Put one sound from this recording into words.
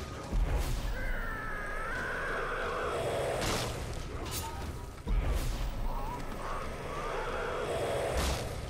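Brutish creatures growl and roar.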